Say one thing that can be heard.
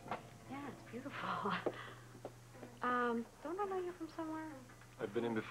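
A young woman speaks with a smile in her voice.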